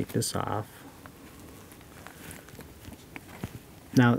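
A small metal tool clicks as it is unfolded.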